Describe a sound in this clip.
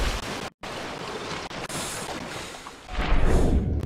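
Waves splash at the water's surface.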